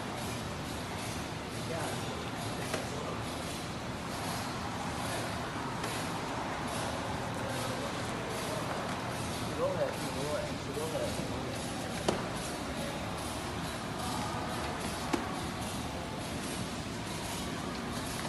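Cardboard sheets scrape and thud against the machine.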